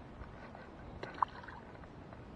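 A small lure splashes into still water.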